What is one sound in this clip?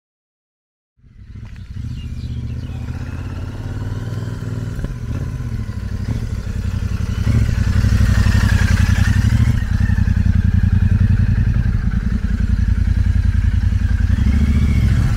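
A motorcycle engine rumbles as it approaches and idles nearby.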